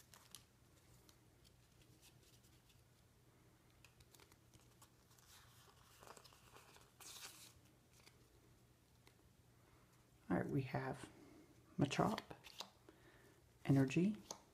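Playing cards softly rustle and slide against each other in hands.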